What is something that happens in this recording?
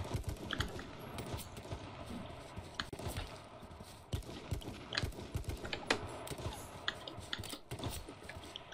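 Footsteps thud on grass.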